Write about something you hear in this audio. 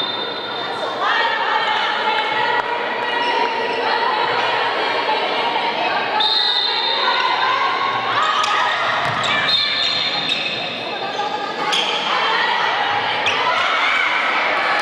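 Young women call out to each other across the court.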